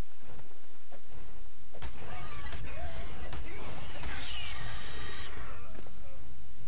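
A spear strikes a creature with heavy thuds.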